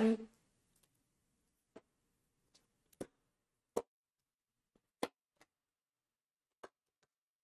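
Playing cards tap and slap softly as they are shuffled.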